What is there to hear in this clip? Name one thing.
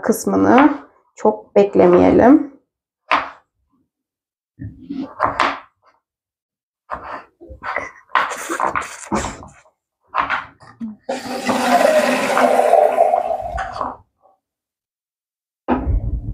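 A knife chops through firm vegetable on a wooden board.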